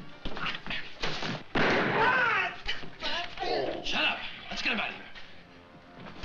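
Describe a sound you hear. A man shouts and groans in pain.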